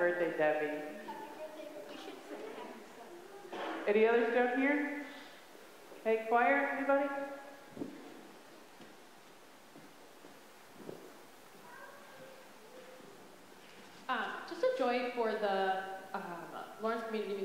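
A man speaks slowly and calmly through a microphone in a large, echoing hall.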